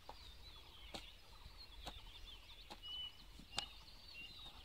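A hoe chops into dry soil with dull thuds.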